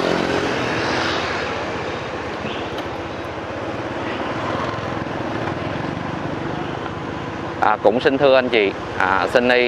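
A motorbike engine hums steadily while riding along a street.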